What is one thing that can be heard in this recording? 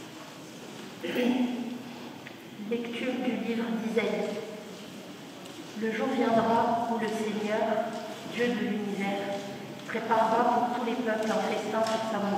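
A crowd of men and women sings together in an echoing hall.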